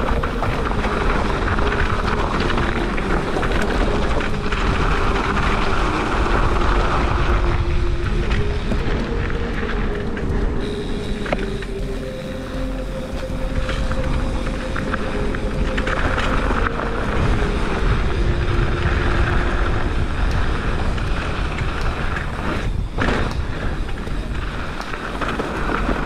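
Bicycle tyres crunch and rattle over a gravel trail.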